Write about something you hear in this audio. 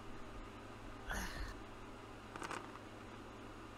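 Dice clatter as they are rolled.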